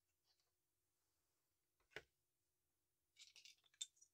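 Plastic toy bricks clatter onto a table as a model breaks apart.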